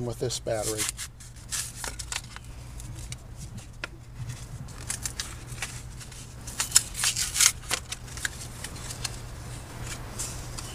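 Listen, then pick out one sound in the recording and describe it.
Plastic packaging crinkles and rustles in a man's hands.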